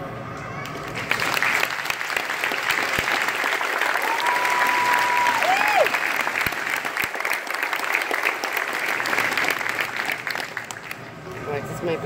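An audience claps and cheers loudly in a large echoing hall.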